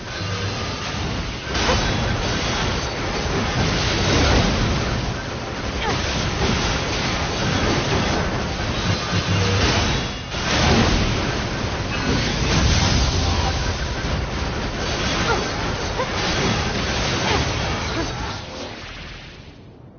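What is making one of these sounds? Blades clash and slash rapidly.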